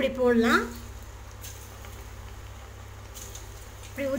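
Food sizzles and bubbles as it drops into hot oil.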